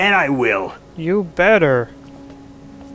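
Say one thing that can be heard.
Another man answers briefly and confidently.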